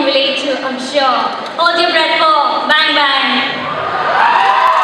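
A young woman sings into a microphone through loudspeakers in a large hall.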